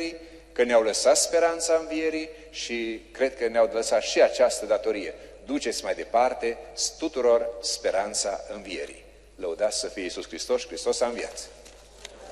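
A man speaks into a microphone, calmly and with feeling, his voice echoing through a large hall.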